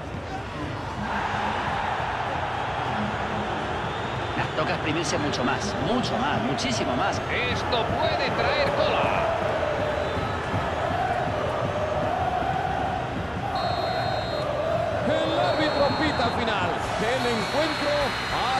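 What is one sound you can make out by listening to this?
A large crowd roars and murmurs in a stadium.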